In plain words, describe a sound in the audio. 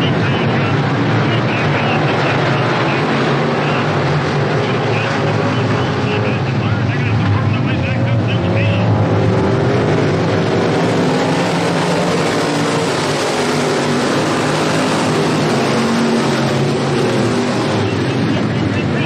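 Many race car engines roar loudly around a dirt track.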